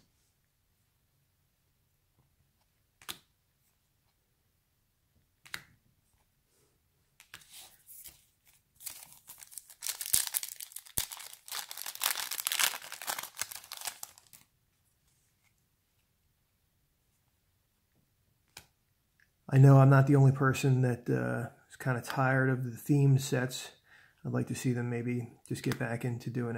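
Trading cards slide and flick against each other in hands.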